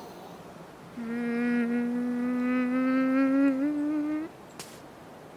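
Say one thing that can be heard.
A young boy makes a long rising humming sound.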